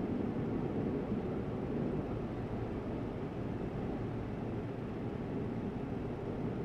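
A truck engine rumbles steadily while driving along a highway.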